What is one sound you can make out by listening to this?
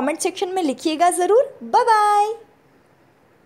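A young woman speaks with animation close by, ending on a drawn-out note.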